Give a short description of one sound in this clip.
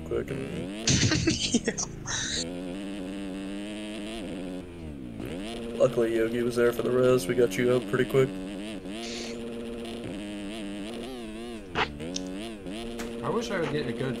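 A motorbike engine whines and revs up and down throughout.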